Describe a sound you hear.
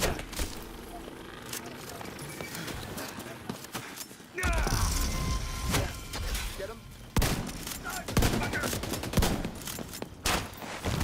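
Gunshots fire in short, loud bursts.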